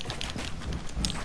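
Wooden walls snap into place with quick knocks.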